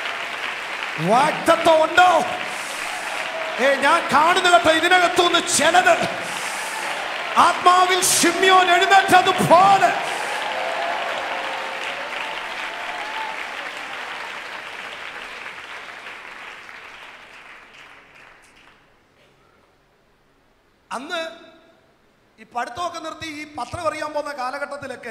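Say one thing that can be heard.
A man speaks forcefully into a microphone through loudspeakers, in a large echoing hall.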